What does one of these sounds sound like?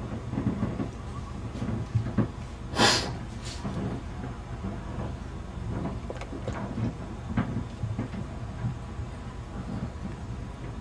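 A boat's outboard motor hums steadily on the water.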